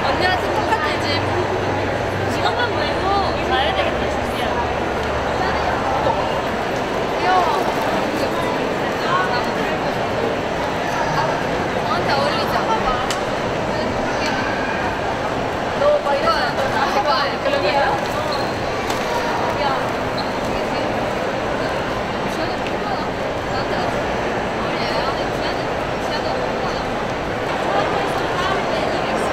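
Young women chat and talk with animation close by.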